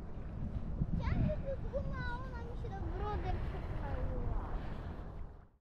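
A young woman speaks close by.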